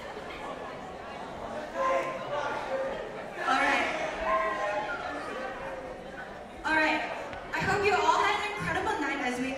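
A crowd of teenage girls chatters and cheers excitedly in a large echoing hall.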